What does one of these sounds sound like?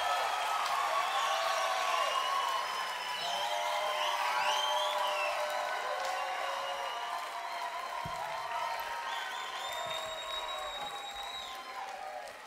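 A large crowd cheers and whistles loudly outdoors.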